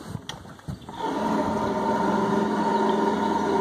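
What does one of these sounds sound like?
A boat motor drones steadily.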